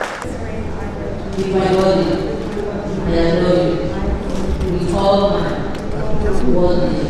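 A young woman speaks softly through a microphone.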